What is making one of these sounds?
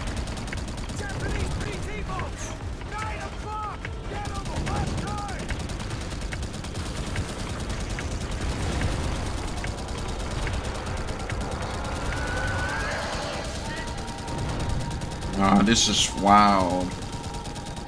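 A young man talks with animation close to a headset microphone.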